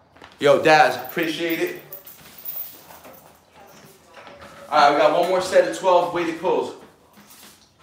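A young man talks close by, with animation.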